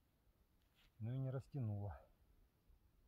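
A man speaks two short words nearby.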